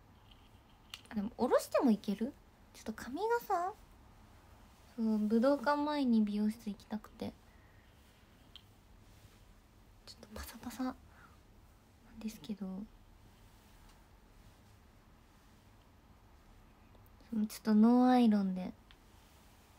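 A young woman speaks softly and briefly in short bursts, close to a microphone.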